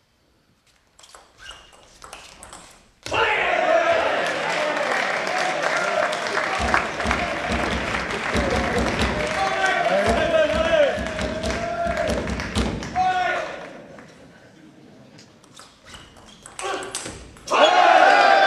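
A ball clicks back and forth off paddles and a table.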